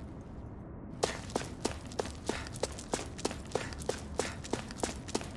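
Footsteps run quickly over gravelly ground.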